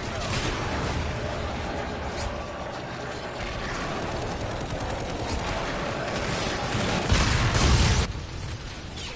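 A small drone whirs as it flies.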